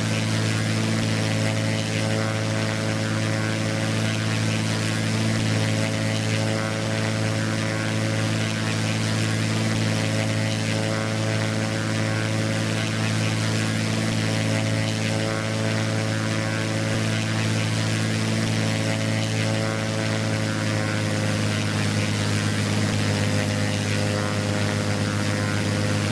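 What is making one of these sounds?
A small propeller plane's engine drones steadily, with a slight change in pitch near the end.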